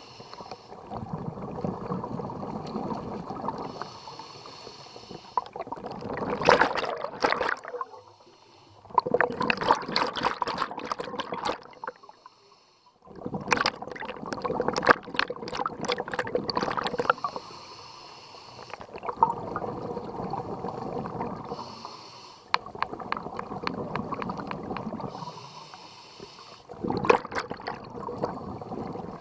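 A diver breathes through a regulator underwater with a steady, rushing hiss.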